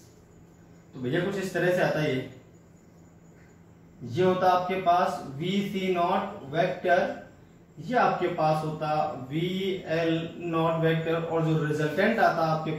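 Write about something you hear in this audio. A young man explains calmly, close by.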